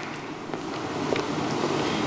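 A man shuffles papers.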